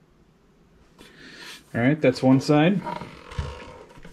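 A heavy box scrapes and bumps as it is turned on a soft mat.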